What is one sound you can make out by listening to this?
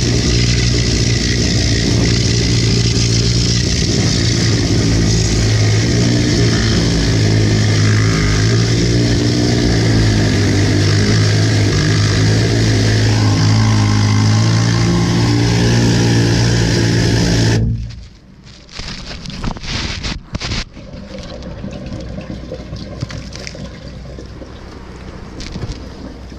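Water from a hose jet sprays and splashes inside a drain pipe.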